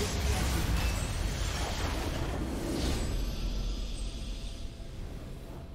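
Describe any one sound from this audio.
A loud, rumbling explosion booms and slowly fades.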